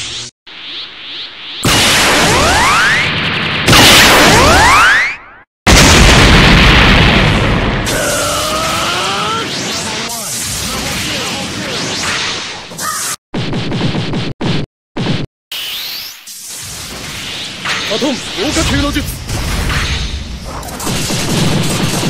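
Rapid hits thud and crack.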